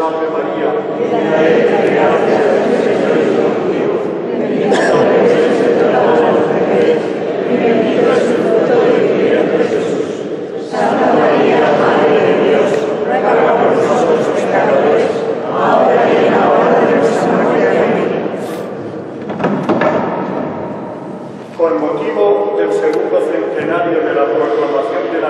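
A crowd of men and women sings together in a large, echoing hall.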